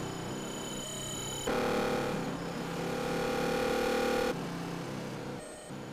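A modular synthesizer plays steady electronic drones and tones.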